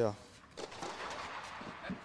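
A tennis ball is struck hard with a racket, echoing in a large hall.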